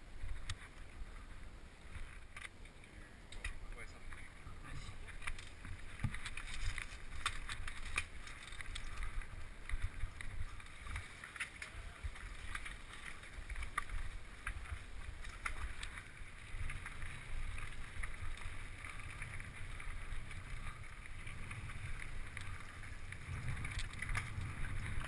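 Bicycle tyres crunch on dirt and gravel.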